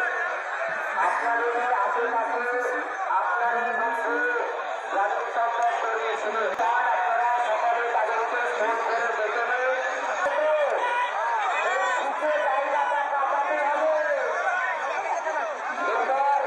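A man speaks loudly and forcefully through a loudspeaker to a crowd outdoors.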